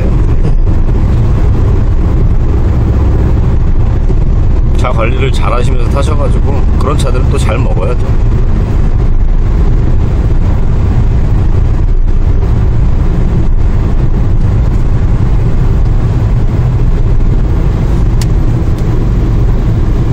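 A car engine hums steadily with road rumble from inside the cabin.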